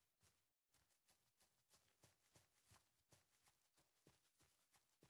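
Paws thud quickly on dry ground as an animal runs.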